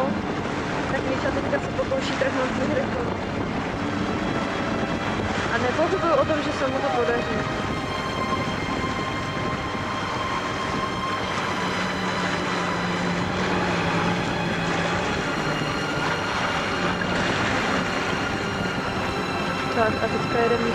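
A jet ski engine drones across the water.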